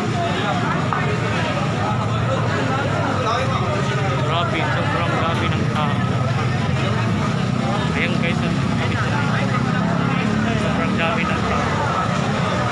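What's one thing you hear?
A crowd of people chatters loudly all around in an echoing hall.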